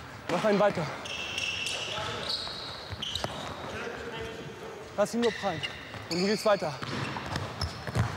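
Sneakers squeak sharply on a hard indoor floor.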